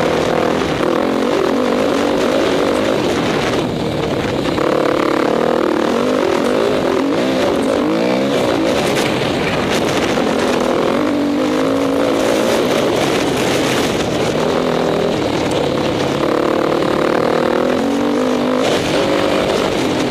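A dirt bike engine roars close by, rising and falling in pitch as the rider works the throttle.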